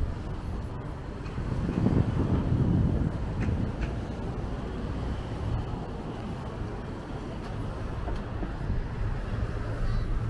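Traffic rumbles past nearby outdoors.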